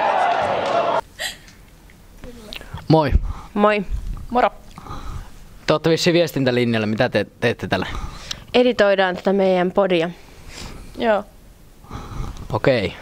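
A young woman answers calmly into a microphone.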